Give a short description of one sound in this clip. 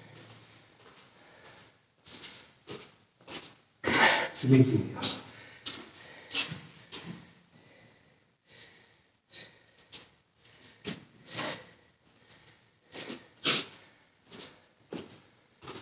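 Bare feet pad softly on a mat.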